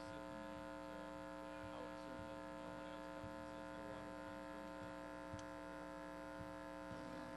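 An electric keyboard holds a soft, steady chord.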